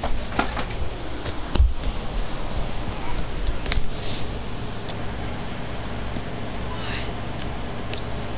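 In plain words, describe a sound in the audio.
A basketball thuds as it is dribbled on a hardwood court.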